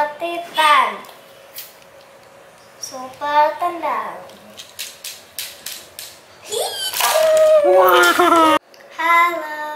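A young boy speaks excitedly close by.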